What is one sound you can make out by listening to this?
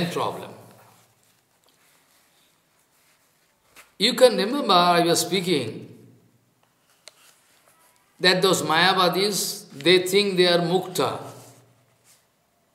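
An elderly man speaks calmly, with pauses, close to a microphone.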